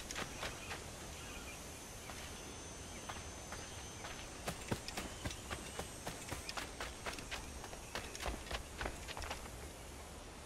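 Footsteps run quickly over dirt and stone steps.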